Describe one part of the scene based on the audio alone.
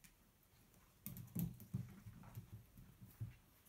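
A puppy's paws clatter on a rocking plastic board.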